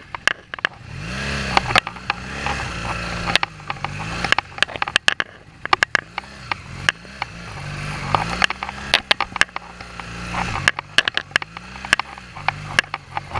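A motorcycle engine rumbles and revs unevenly at low speed.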